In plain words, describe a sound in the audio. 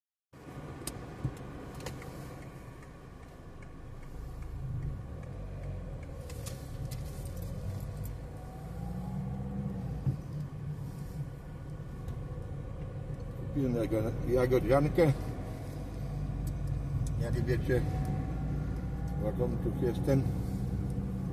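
A car engine hums steadily from inside the car while driving.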